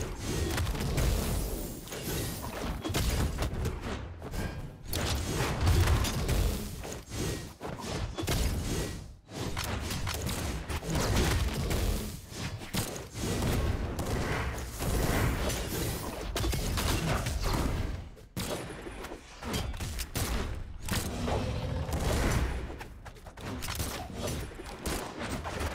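Game characters hit each other with thumping impacts and swooshes.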